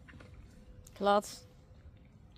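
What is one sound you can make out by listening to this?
A rough collie puppy yelps sharply.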